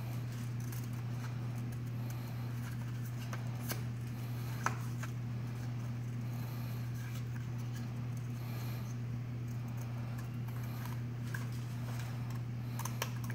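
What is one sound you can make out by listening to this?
Paper rustles as it is cut.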